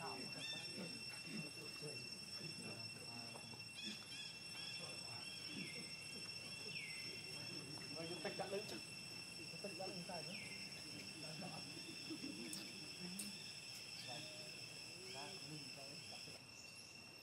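Dry leaves rustle under running monkeys' feet.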